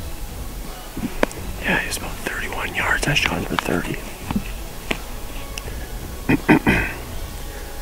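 A young man whispers quietly close to the microphone.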